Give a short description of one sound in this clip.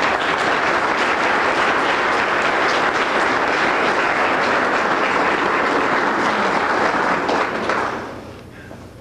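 An audience applauds loudly in an echoing hall.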